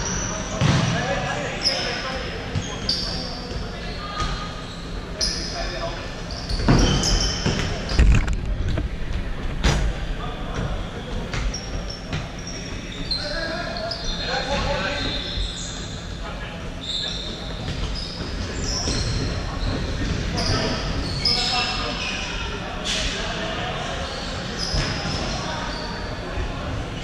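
Shoes squeak sharply on a wooden floor in a large echoing hall.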